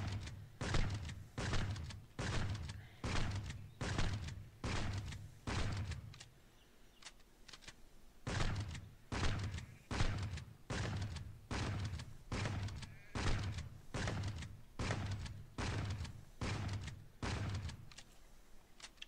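A gun fires single shots at a steady pace.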